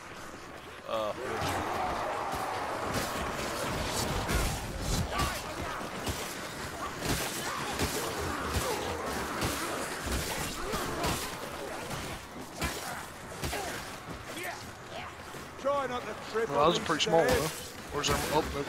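Blades slash and thud into flesh in a fierce melee.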